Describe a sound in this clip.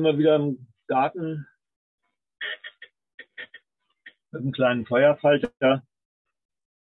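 An older man talks calmly through a microphone, as in an online call.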